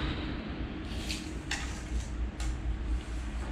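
A metal tape measure rattles and snaps as it is pulled out and let back.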